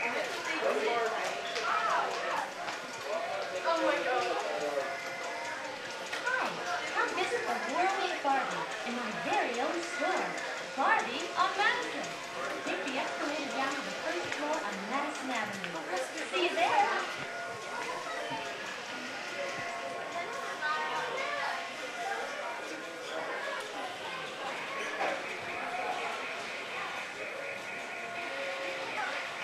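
Men and women chatter nearby in a busy indoor space.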